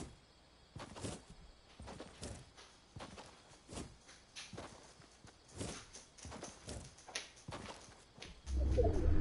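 Quick footsteps patter through grass.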